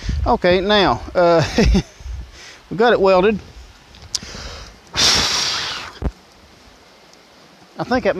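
A small flame hisses and crackles.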